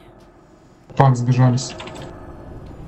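Magic spells crackle and burst with a loud boom.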